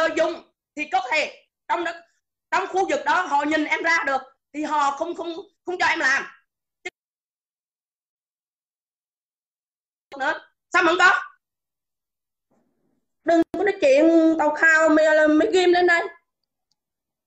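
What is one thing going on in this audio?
A middle-aged woman speaks with animation close to a phone microphone.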